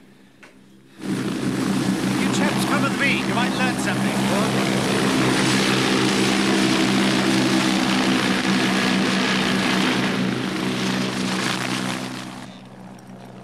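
A helicopter's rotor thuds loudly as it hovers nearby.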